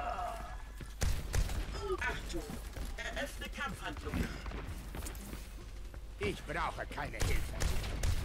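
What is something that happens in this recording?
A heavy gun fires in short bursts.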